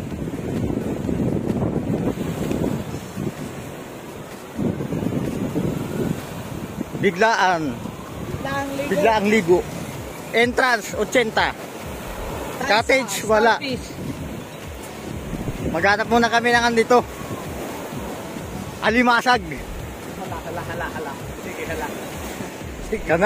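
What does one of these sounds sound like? Small waves wash and splash onto the shore.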